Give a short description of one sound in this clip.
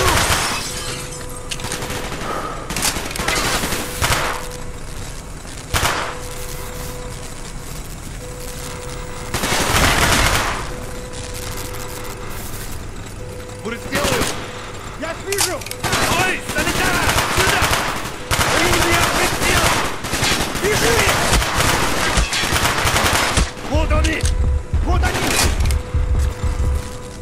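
Automatic gunfire rattles in short, loud bursts indoors.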